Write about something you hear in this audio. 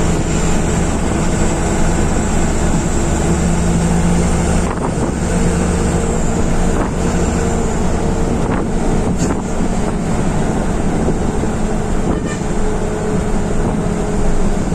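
The bus body rattles and shakes over the road.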